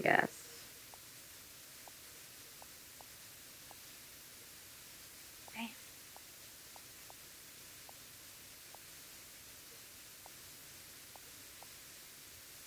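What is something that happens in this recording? Soft, faint clicks sound in a steady series as keys are tapped.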